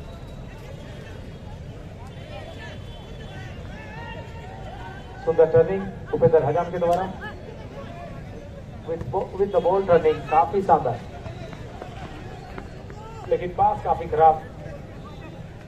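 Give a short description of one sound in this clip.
A large crowd murmurs outdoors.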